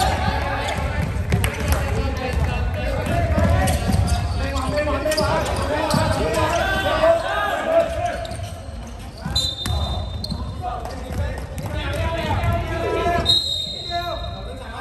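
Young men shout and call out loudly, echoing around a large hall.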